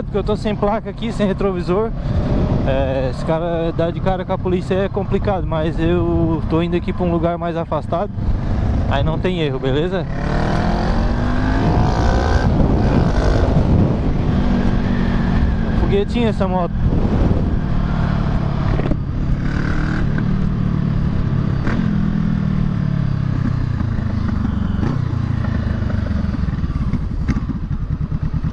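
A motorcycle engine hums and revs up and down while riding.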